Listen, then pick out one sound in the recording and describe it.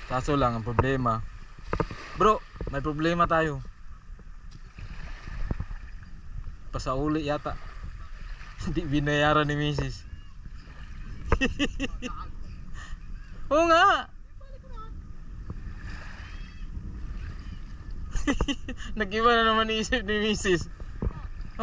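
Small waves lap gently against boats.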